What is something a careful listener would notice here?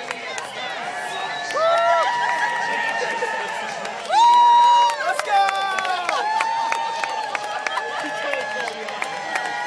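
Fans clap their hands.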